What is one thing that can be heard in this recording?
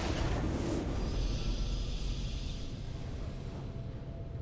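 A bright victory chime rings out.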